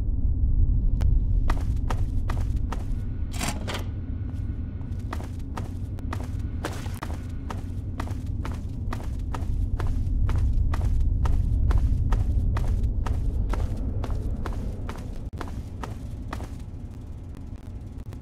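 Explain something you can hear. Footsteps fall at a steady walking pace on a concrete floor in an echoing tunnel.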